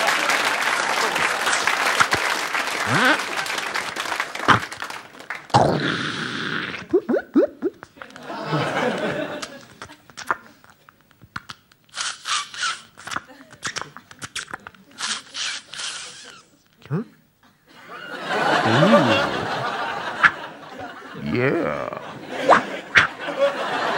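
A man makes sound effects with his mouth into a microphone.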